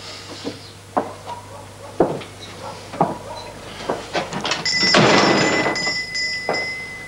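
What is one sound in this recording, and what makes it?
A door handle clicks and rattles.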